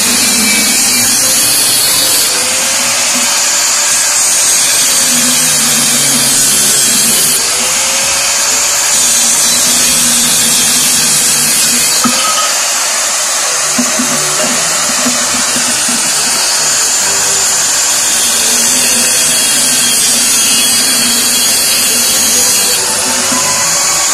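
An angle grinder whines loudly, grinding through metal in long bursts.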